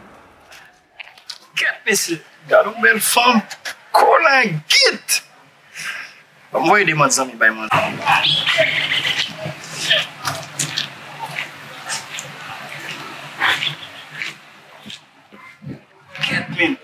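A young man sings in a rhythmic, half-spoken way, close by.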